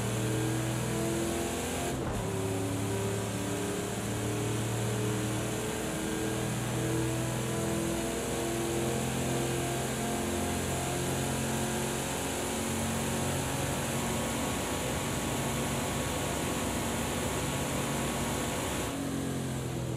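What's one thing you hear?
A racing car engine roars loudly at high speed, climbing and shifting up through the gears.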